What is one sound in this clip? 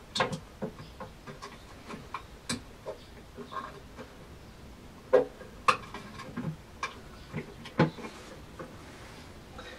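Metal tools click and knock against a wash basin fitting.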